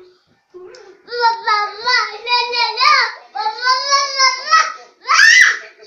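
A small child sings in a high voice close by.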